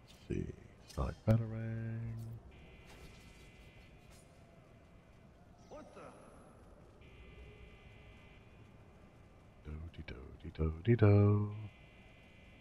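A gadget gives off a loud electronic whine.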